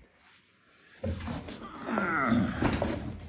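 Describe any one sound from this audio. A cardboard box scrapes and rustles as it is handled.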